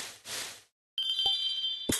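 A sparkling chime sounds in the game.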